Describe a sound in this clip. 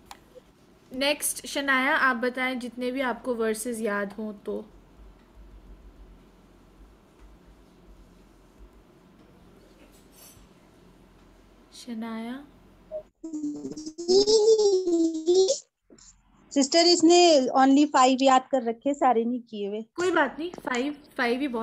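A young girl speaks with animation through an online call.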